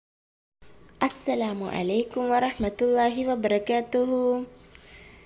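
A young girl speaks in a bright, sing-song voice close to a microphone.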